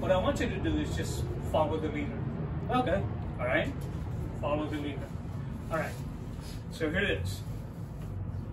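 An older man speaks calmly into a clip-on microphone.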